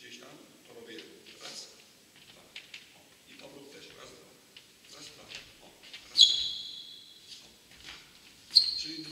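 A table tennis ball bounces on a table.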